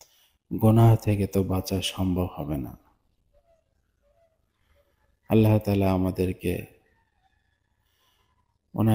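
A young man sings into a microphone in long, melodic phrases, pausing between them.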